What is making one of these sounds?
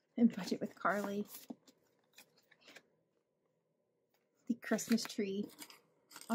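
Paper bills rustle softly as they are handled.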